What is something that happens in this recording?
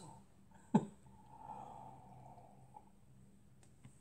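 A woman sips from a mug.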